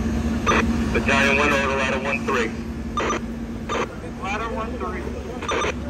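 Men talk loudly nearby, outdoors.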